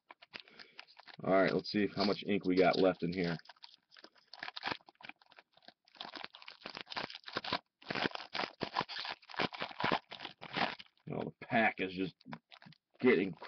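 A foil wrapper crinkles and rustles as it is torn open by hand.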